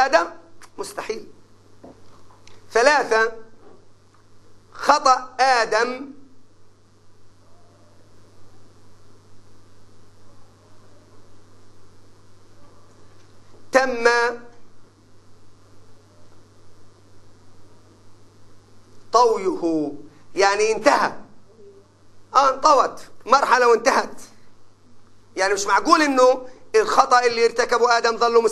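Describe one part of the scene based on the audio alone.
An elderly man speaks with animation through a clip-on microphone, in bursts with long pauses.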